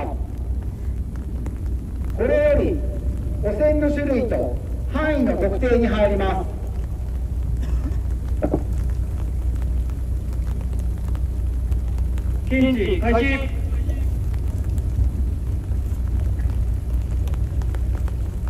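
A heavy armoured vehicle's diesel engine rumbles steadily nearby.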